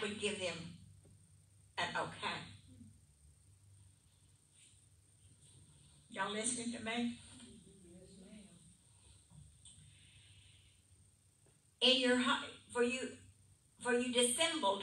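An older woman speaks in bursts, heard through a microphone in a large room.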